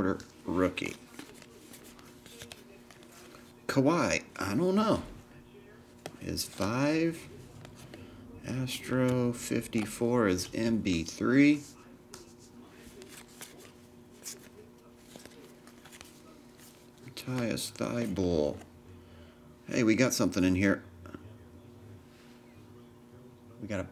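Glossy trading cards slide and rustle against each other in hands.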